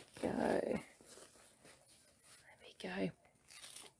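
A disposable nappy rustles and crinkles as it is fastened.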